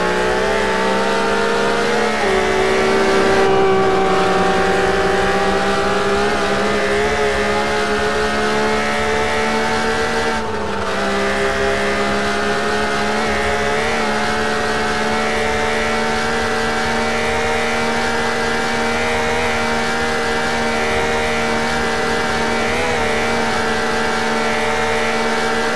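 Tyres hum steadily on the road.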